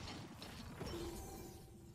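A gunshot cracks nearby.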